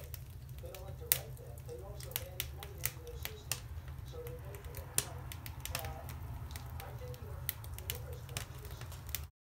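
A small animal chews and smacks on food with quick clicking sounds.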